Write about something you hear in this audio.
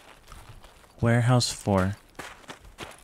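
A young man speaks briefly and loudly into a microphone.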